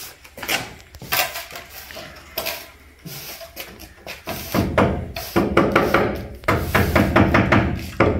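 A hammer knocks against a wooden door frame.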